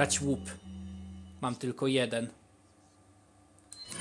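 A game menu gives a short electronic blip as the selection changes.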